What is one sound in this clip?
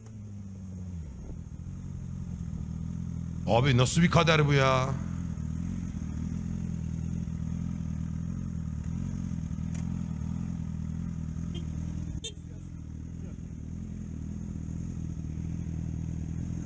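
A motorcycle engine drones steadily.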